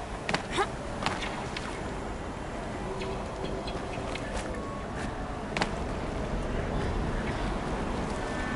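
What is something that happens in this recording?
Hands and feet scrape and thud on rock during a climb.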